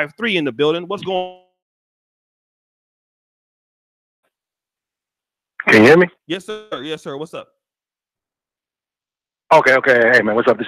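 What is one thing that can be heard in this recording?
A man speaks with animation, close to a microphone, in bursts with pauses.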